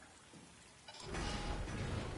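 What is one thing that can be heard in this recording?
A heavy door rumbles open.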